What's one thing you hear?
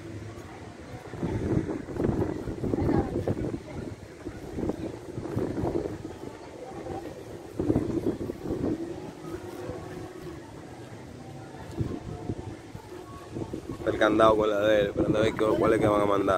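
Young boys talk and call out to each other outdoors.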